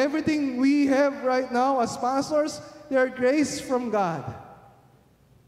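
A young man speaks with animation into a microphone, heard through a loudspeaker in a large room.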